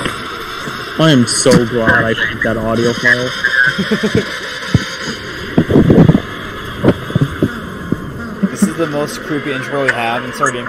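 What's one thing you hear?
A man speaks slowly and deeply through loudspeakers that echo around an arena.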